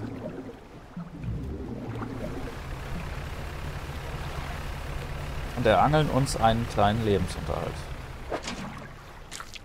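A boat engine chugs steadily.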